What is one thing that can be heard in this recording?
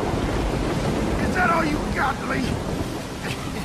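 A man speaks in a weak, taunting voice up close.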